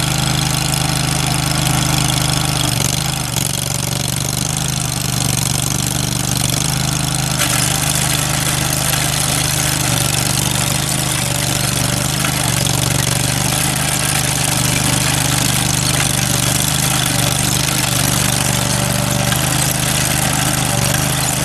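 A small engine runs steadily, close by.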